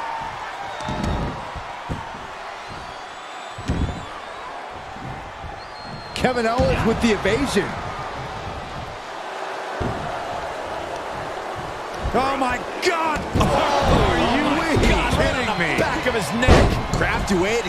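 Heavy bodies thud onto a wrestling mat.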